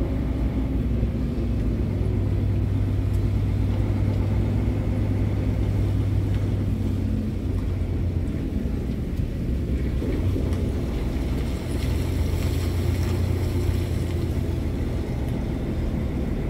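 A truck engine idles nearby with a low, steady rumble.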